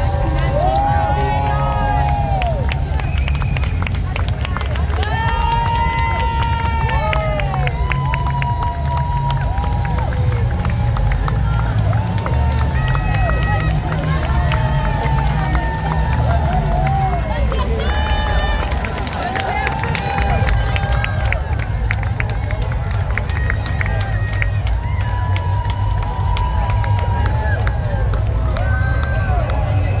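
A large outdoor crowd cheers and whoops loudly.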